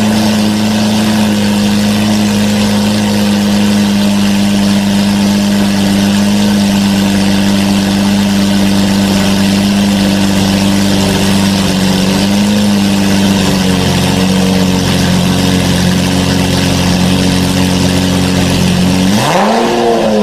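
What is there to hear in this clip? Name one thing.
A sports car engine idles with a deep, steady rumble indoors.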